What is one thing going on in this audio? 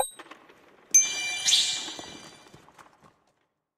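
A bright electronic chime rings out.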